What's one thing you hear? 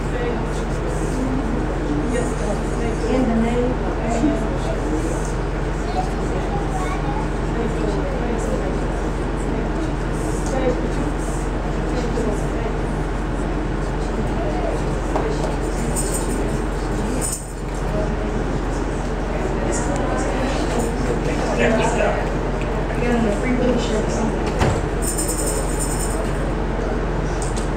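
A crowd of men and women prays and calls out loudly in a reverberant hall.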